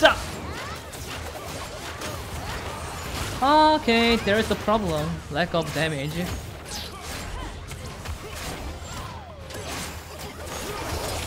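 Video game spells burst and crackle.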